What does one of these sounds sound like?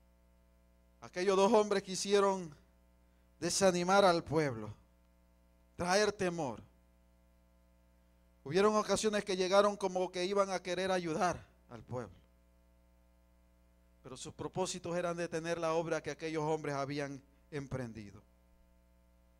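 A man preaches into a microphone in bursts, heard through loudspeakers in a room.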